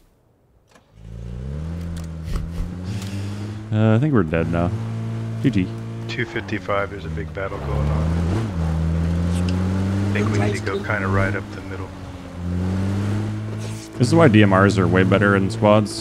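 A vehicle engine drones and revs.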